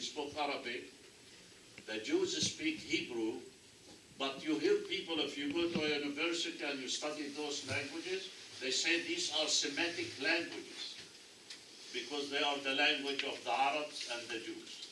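An elderly man speaks calmly and clearly to a small group.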